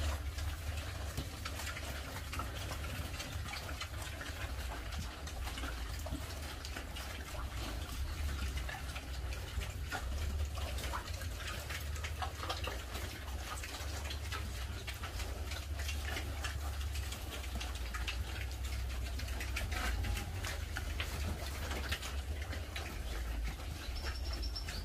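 Pigs snuffle and chew while they feed off a wet concrete floor.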